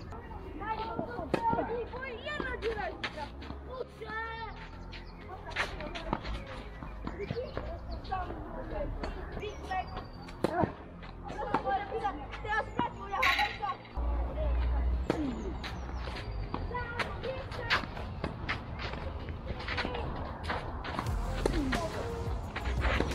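A tennis ball is struck with a racket in a rally outdoors.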